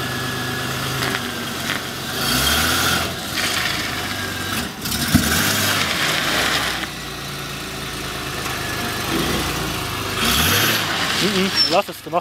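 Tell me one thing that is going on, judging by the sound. A car engine idles with a low steady hum and revs up now and then.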